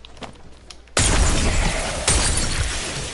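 A gun fires several shots.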